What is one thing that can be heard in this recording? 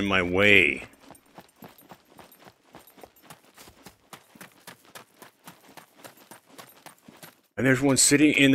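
Footsteps run quickly along a hard road.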